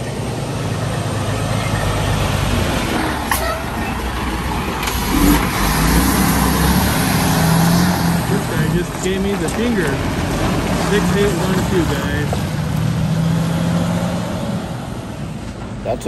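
A truck engine idles loudly close by.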